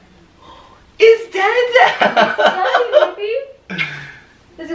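A young woman laughs and cheers excitedly, close by.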